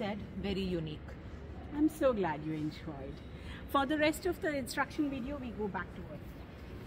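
A second woman speaks with animation nearby.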